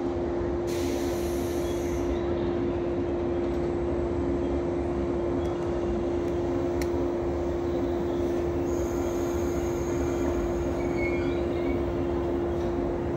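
A diesel train engine idles with a steady hum close by.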